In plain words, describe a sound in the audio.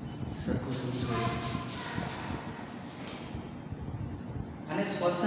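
A young man speaks calmly and clearly, close by, in a slightly echoing room.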